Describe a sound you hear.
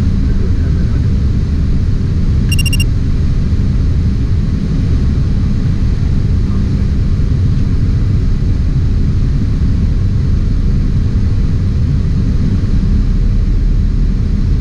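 Jet engines roar steadily with a deep rumble of wind around the cockpit.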